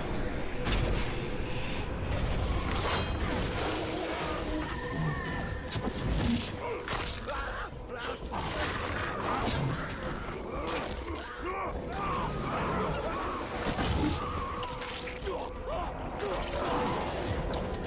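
A beast snarls and growls.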